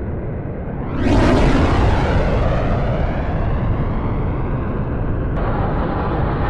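A jet engine roars loudly as a fighter plane flies past.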